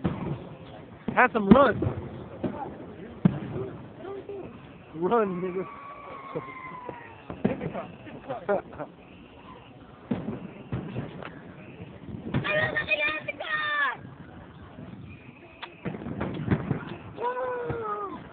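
Fireworks burst with loud bangs and crackles.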